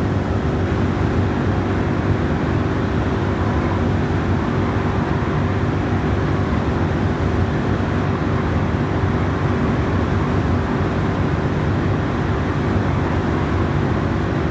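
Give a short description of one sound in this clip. Tyres hum on smooth pavement.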